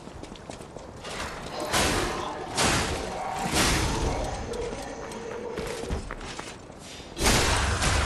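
Blades clash and strike in loud bursts.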